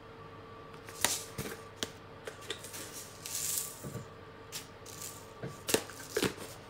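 A spice shaker rattles as it is shaken.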